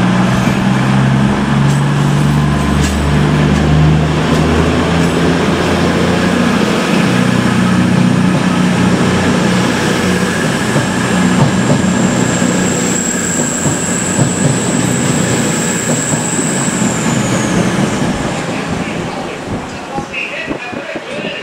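A diesel train engine rumbles loudly close by as the train pulls away.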